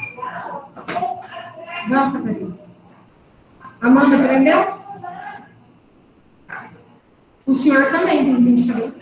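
A young woman speaks calmly through an online call, with pauses.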